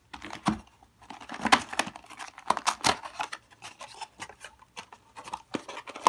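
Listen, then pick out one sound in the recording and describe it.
A cardboard box lid is opened with a scrape.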